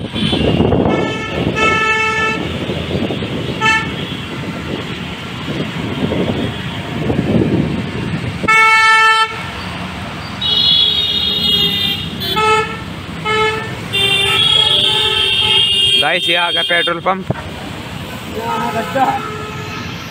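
Vehicle horns honk repeatedly nearby.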